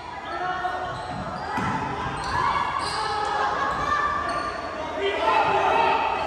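Young players shout to one another in a large echoing gym.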